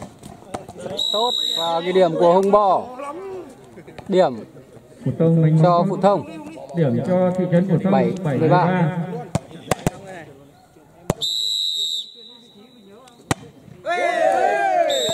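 Young men shout and call out outdoors.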